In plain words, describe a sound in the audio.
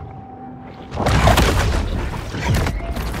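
Water splashes and churns at the surface.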